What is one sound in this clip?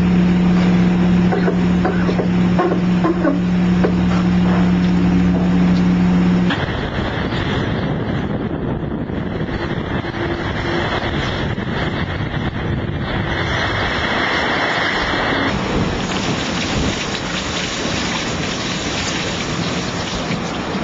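Strong wind roars across a sailing boat.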